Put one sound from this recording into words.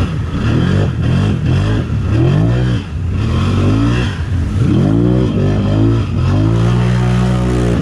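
Water splashes and sprays loudly.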